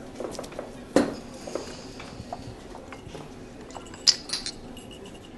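A cup clinks on a saucer.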